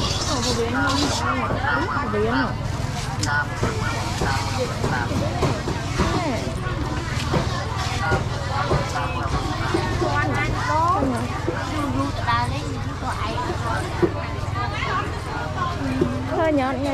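A busy crowd of men and women chatters nearby.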